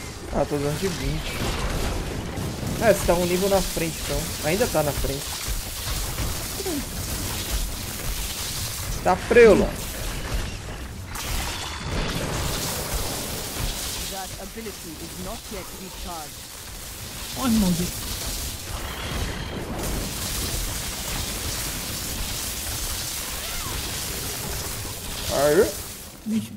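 Monsters shriek and growl as they are struck.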